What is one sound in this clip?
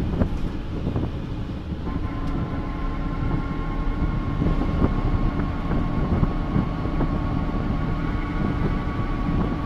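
A bus body rattles and clatters over bumps.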